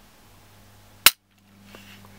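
A pistol trigger snaps with a sharp click.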